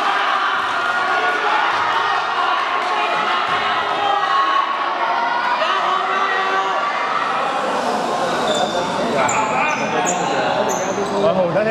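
A crowd of young people chatters and calls out in a large echoing gym.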